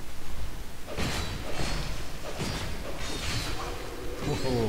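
A sword strikes an armoured foe with heavy clangs.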